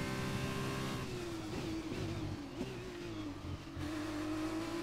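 A racing car engine drops in pitch as the car brakes hard into a corner.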